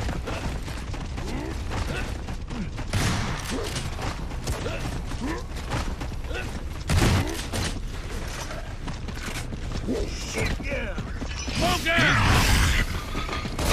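Heavy footsteps run over hard ground.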